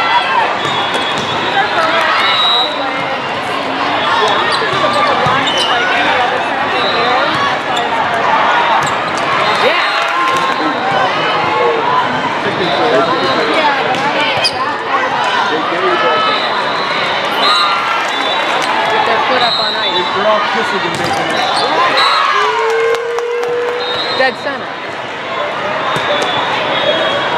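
A volleyball is struck with sharp slaps and thuds.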